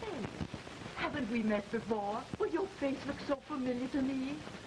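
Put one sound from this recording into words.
A middle-aged woman speaks with animation, heard through an old, hissy film soundtrack.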